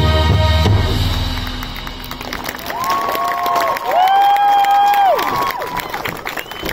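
A brass marching band plays loud sustained chords outdoors.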